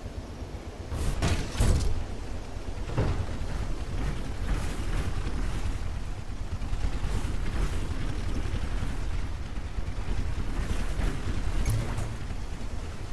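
A heavy robot walks with loud, thudding metal footsteps.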